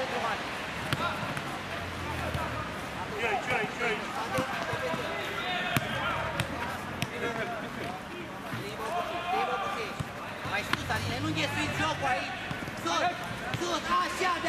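A football thuds as a player kicks it.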